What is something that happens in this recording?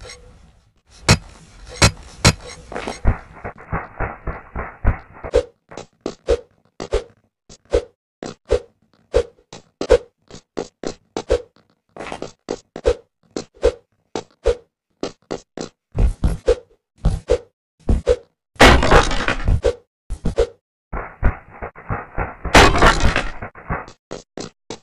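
Quick footsteps patter as a game character runs and jumps.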